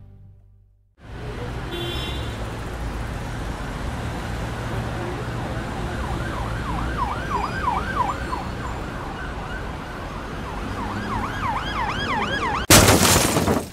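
A small car engine hums steadily as the car drives.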